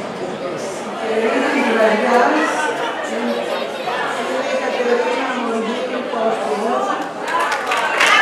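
An elderly woman speaks calmly into a microphone up close.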